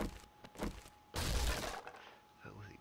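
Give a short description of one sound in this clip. A wooden door is smashed open with loud cracks.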